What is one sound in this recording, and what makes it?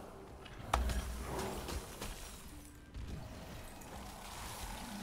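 Fantasy combat sound effects clash and whoosh.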